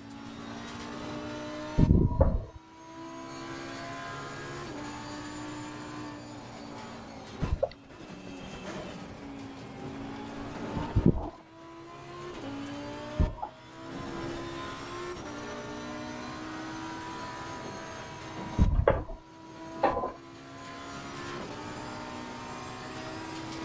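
A race car engine roars steadily, rising and falling in pitch as the gears shift.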